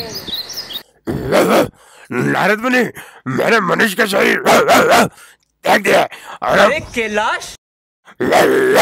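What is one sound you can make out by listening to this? A young man speaks with feeling, close by.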